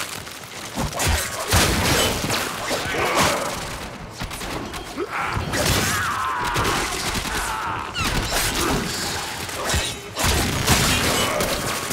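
A blade swishes and strikes with sharp clangs.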